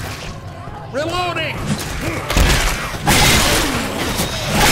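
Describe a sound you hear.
Zombies snarl and screech nearby.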